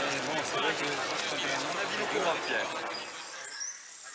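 Several men talk over one another close to microphones in a crowd.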